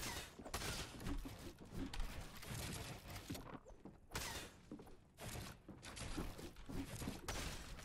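A pickaxe thuds against wood.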